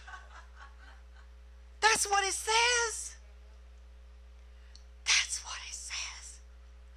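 A middle-aged woman speaks warmly into a microphone.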